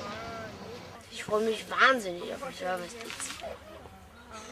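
A boy laughs and talks close by.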